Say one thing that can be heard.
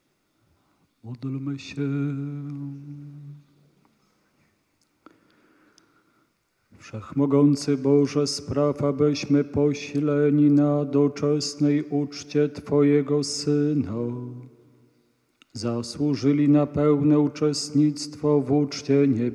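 A man chants slowly in a large echoing hall, holding long notes.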